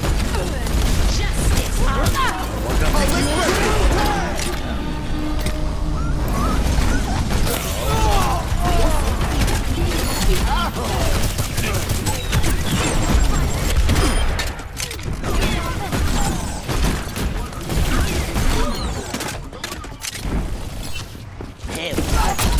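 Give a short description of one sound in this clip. Game guns fire in rapid bursts.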